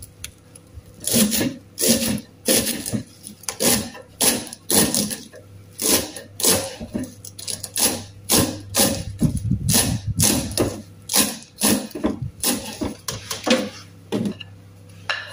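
A knife chops leafy greens on a wooden board with quick, crisp knocks.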